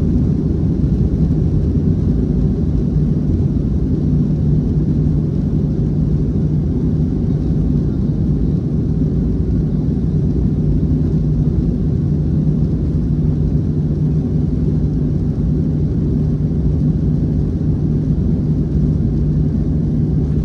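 Aircraft wheels rumble along a runway.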